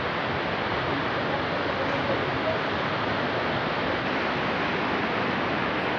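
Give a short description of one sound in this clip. A waterfall roars steadily in the distance.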